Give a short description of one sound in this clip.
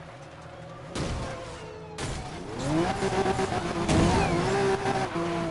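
Cars crash and scrape against each other.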